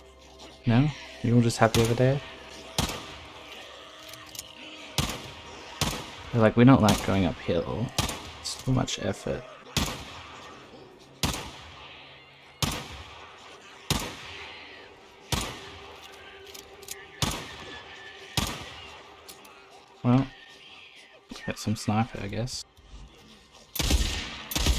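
A pistol fires repeated loud shots, outdoors.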